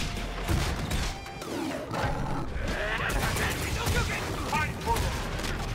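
Punches and kicks land with heavy, sharp thuds in quick bursts.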